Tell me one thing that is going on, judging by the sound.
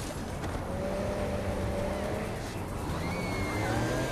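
A car engine hums and revs up.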